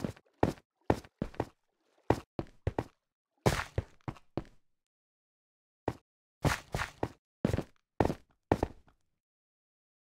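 Footsteps tread on stone at a steady pace.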